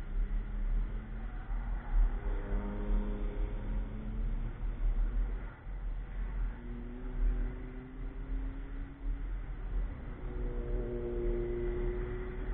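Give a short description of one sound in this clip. A race car engine roars and revs as it speeds by.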